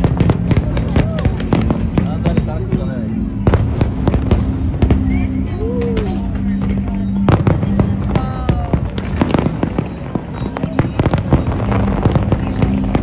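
Fireworks crackle and sizzle overhead.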